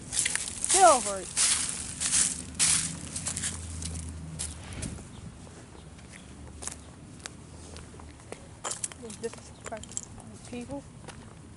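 Footsteps crunch over dry leaves and pavement.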